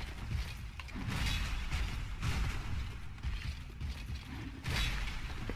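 Metal weapons clash and swing in a fight.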